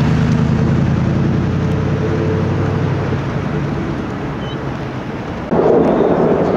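Traffic rumbles steadily on a nearby street outdoors.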